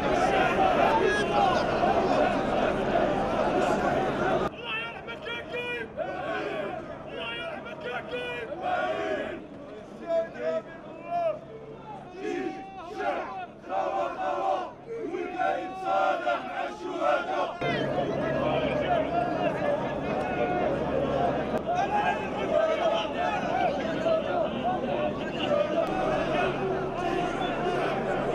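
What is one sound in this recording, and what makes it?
A large crowd of men chants and shouts outdoors.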